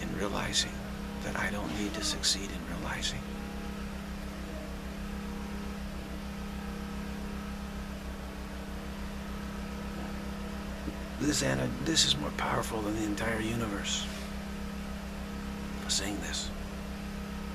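A middle-aged man speaks calmly and slowly, close to the microphone, with long pauses.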